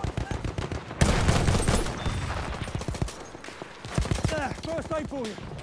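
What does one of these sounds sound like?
A rifle fires single loud shots.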